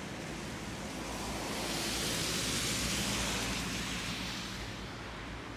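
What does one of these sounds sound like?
A car drives past on a wet, slushy road.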